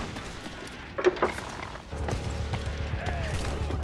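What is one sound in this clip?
Cannons fire in heavy booming blasts.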